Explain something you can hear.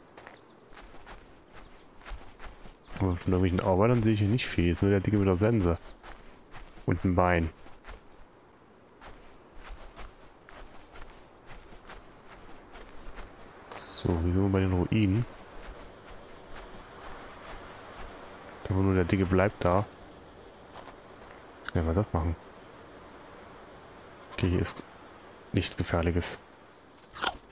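Footsteps rustle through grass and crunch on dry ground.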